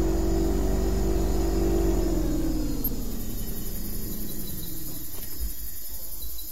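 A boat motor hums steadily, then slows and winds down.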